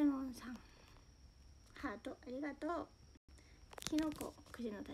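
Fingers tap and brush against a phone microphone.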